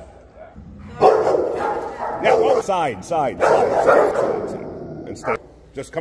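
A dog barks and growls loudly.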